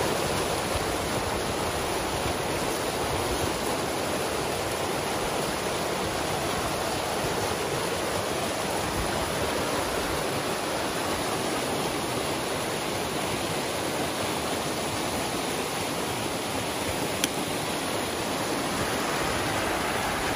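Water rushes and splashes steadily through a narrow gap.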